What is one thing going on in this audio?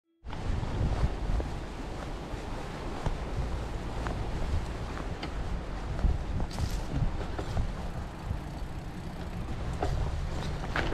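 Bicycle tyres roll and bump over a grassy dirt path.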